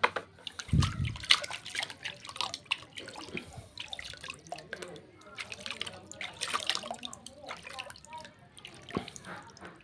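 Water splashes and sloshes in a tub as hands swish plant roots through it.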